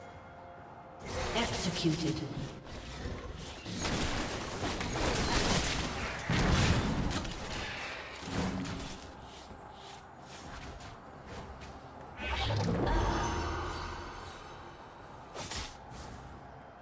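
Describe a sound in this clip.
Game combat effects whoosh and crash in bursts.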